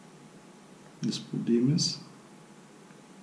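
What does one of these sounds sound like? A man speaks a few words briefly and close by.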